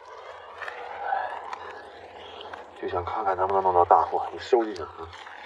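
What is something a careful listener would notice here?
A fishing line scrapes against the edge of ice.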